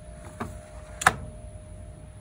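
A plastic drawer slides shut with a click.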